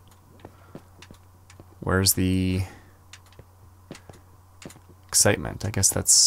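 A pickaxe taps against stone in a video game.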